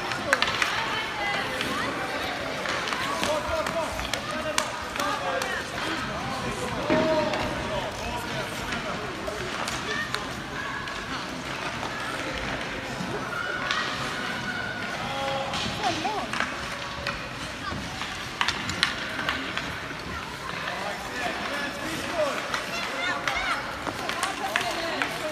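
Children shout and call out across an echoing rink.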